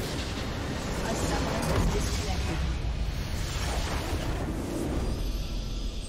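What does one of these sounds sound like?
A deep explosion booms and rumbles loudly.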